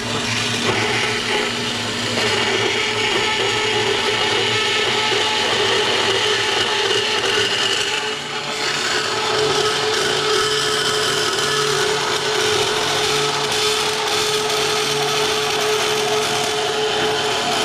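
A band saw hums and rasps as it cuts through a metal tube.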